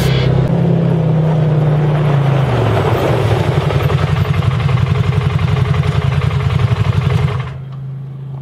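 An engine revs loudly.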